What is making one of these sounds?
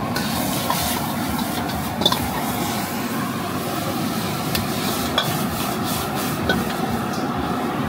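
A metal ladle clanks and scrapes against a wok.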